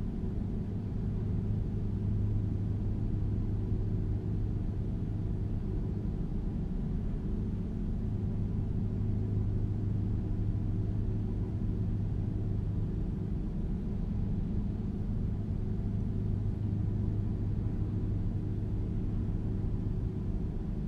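A truck's diesel engine drones steadily while driving.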